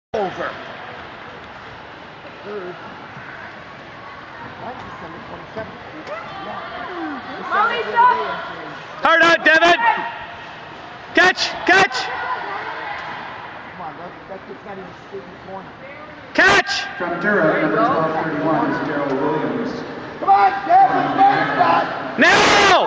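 Spectators shout and cheer loudly in a large echoing rink.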